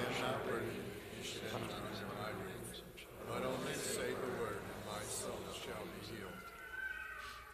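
A man chants through a microphone in a large echoing hall.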